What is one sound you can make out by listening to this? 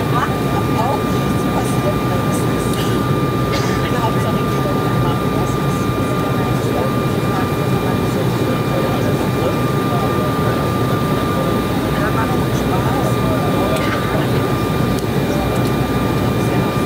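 A jet engine roars steadily, heard from inside an airplane cabin.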